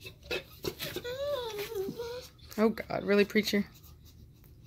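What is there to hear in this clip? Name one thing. A dog whines in high, wavering tones.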